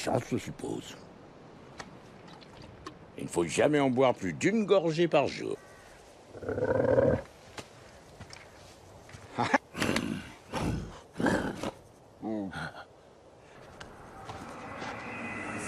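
A young man speaks, close by.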